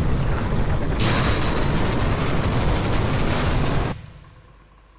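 A loud magical blast roars and crackles.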